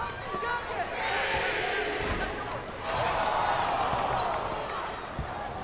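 A crowd cheers loudly in a large arena.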